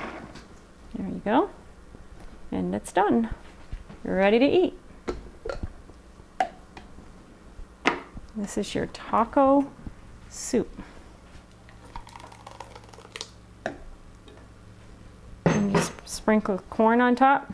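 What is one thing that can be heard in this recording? A woman speaks calmly and close by through a microphone.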